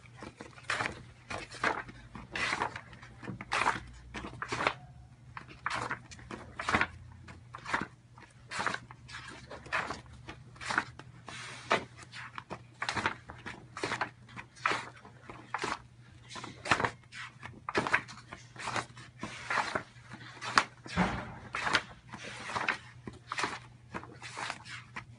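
Thick wallpaper sample pages rustle and flap as they are turned in a large book.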